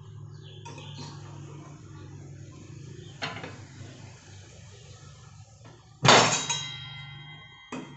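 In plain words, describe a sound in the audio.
A wrench clanks against the saw's metal nut.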